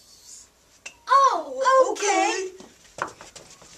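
Young girls shriek and laugh loudly.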